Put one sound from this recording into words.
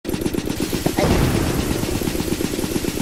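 A sudden zap crackles.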